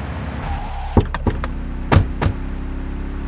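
Car doors slam shut twice.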